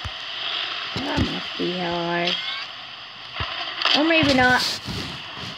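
A boy talks with animation close to a microphone.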